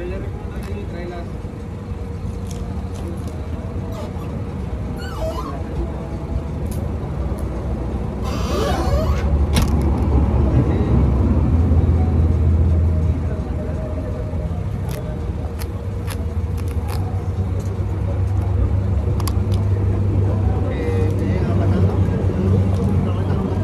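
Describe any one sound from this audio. A tyre pump clicks and taps as a man handles it.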